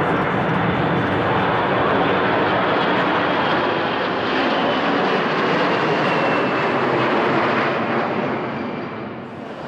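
A jet airliner's engines roar loudly as it takes off and climbs away, slowly fading.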